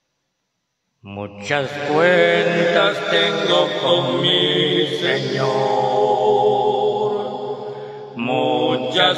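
A man speaks with animation into a microphone, heard through a loudspeaker.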